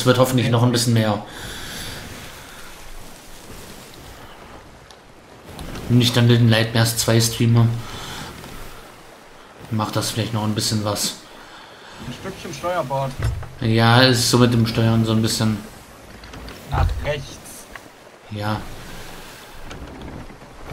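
Rough waves wash against a wooden ship at sea.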